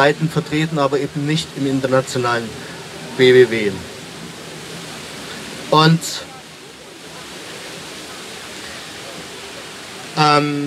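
An elderly man speaks into a microphone outdoors, with pauses between phrases.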